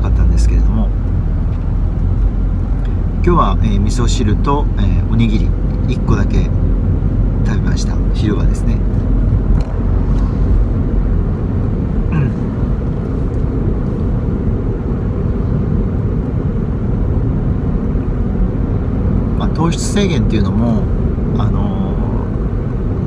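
A car engine hums steadily with road rumble inside the car.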